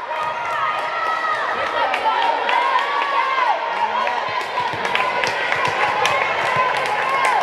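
Young women call out and chatter in the echoing hall.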